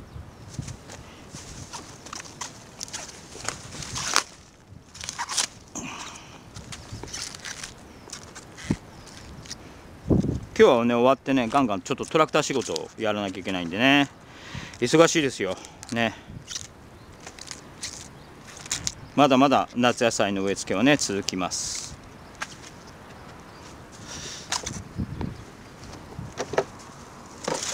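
Leaves rustle and crackle as they are handled.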